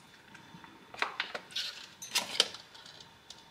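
Metal clinks and clatters as a small pot is handled.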